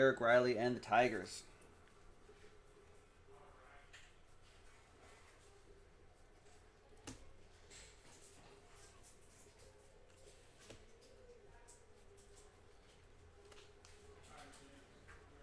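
Trading cards flick and shuffle in hands.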